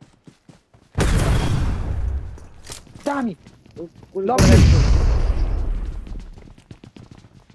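Explosions boom loudly, close by.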